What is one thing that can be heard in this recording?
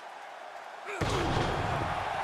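A body slams heavily onto a wrestling ring mat with a loud thud.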